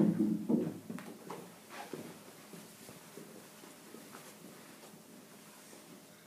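Footsteps shuffle across a carpeted floor.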